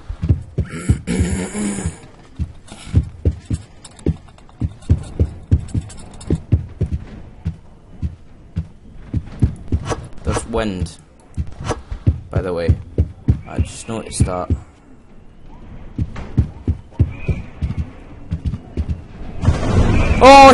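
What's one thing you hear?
Footsteps thud steadily on a hard floor.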